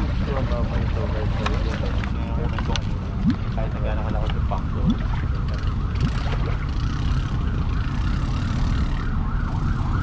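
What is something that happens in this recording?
A man talks nearby in a calm voice.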